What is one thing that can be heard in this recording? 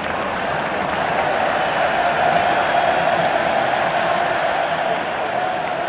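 A large crowd roars and cheers steadily in an open stadium.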